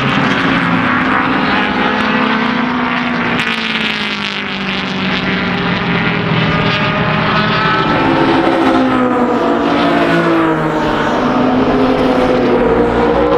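Racing car engines roar loudly as cars speed past.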